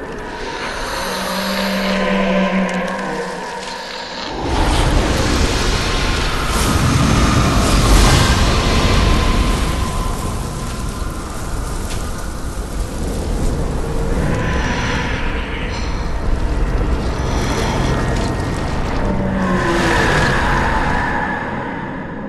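A large creature growls and shrieks loudly.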